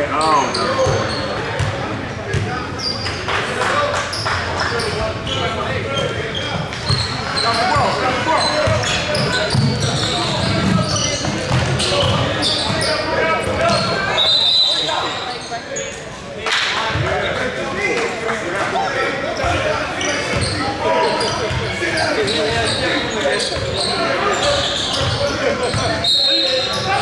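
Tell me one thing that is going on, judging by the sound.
Many voices chatter and call out in a large echoing hall.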